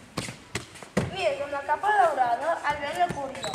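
A young girl speaks loudly in an echoing hall.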